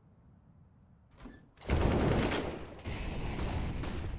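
A rifle is drawn with a metallic clack in a video game.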